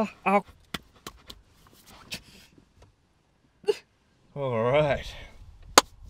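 A young man laughs up close.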